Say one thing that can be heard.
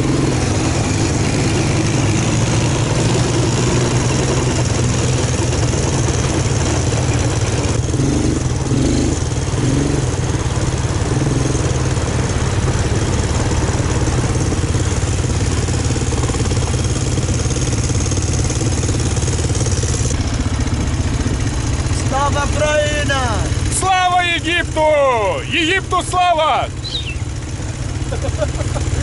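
Quad bike engines rumble and drone steadily.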